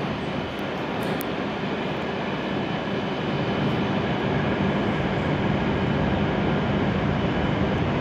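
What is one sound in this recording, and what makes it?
A train rolls slowly in, growing louder.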